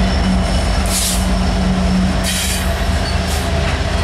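Freight cars clatter over the rails as a train rolls past close by.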